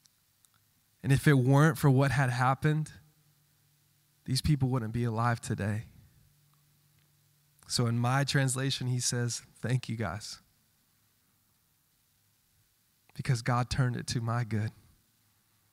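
A young man speaks with animation into a microphone, heard over loudspeakers in a large room.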